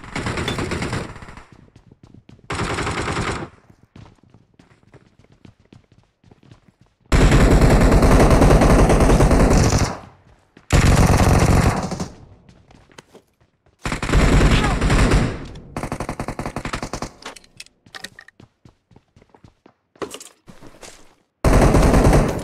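Footsteps run across hard floors indoors.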